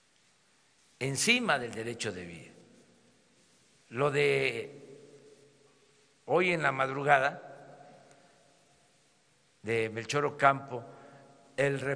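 An elderly man speaks calmly through a microphone in short phrases with pauses, echoing in a large hall.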